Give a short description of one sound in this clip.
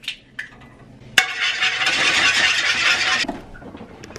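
A fork scrapes against a pan.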